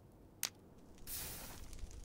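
A flint strikes and a fire flares up with a rushing crackle.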